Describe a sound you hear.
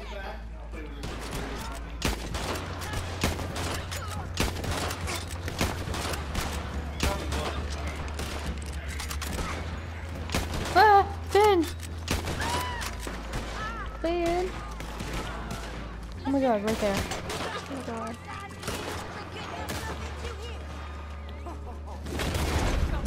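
Gunshots crack again and again.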